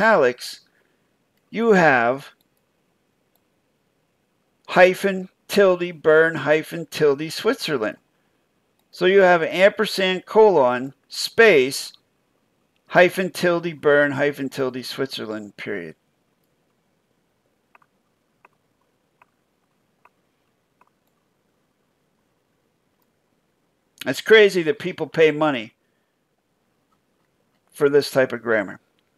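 A middle-aged man talks calmly into a microphone, in short bursts with pauses.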